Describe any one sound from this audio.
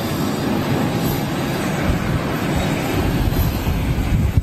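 A jet airliner's engines roar steadily as it taxis in the distance.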